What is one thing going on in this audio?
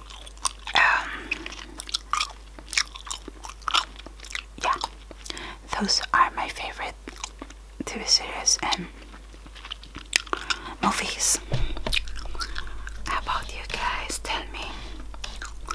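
A woman whispers softly and closely into a microphone.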